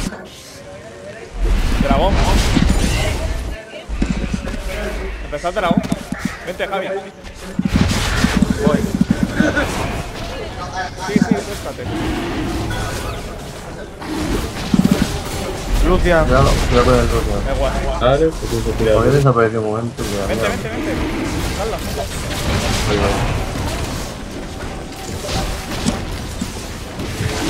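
Fantasy game combat sounds whoosh and crackle with spell blasts and hits.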